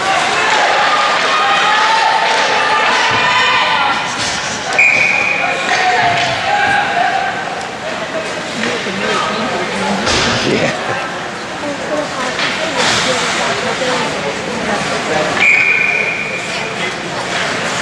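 Young men shout and call out across an echoing rink.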